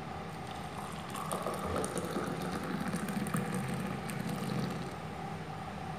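Hot liquid pours and splashes into a glass.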